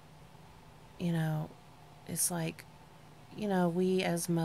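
A woman speaks quietly and close by, in short bursts.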